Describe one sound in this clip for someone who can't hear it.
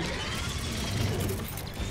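A large walking machine stomps heavily nearby.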